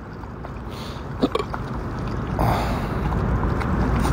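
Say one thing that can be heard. Water splashes from a bottle onto the ground.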